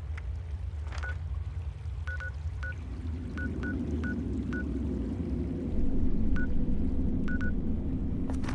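Short electronic menu blips click several times.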